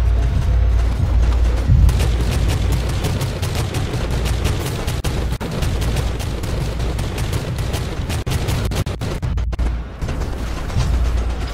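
Flames roar in explosions.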